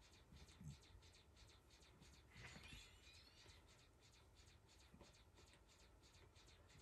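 Rapid laser shots fire again and again in a space game.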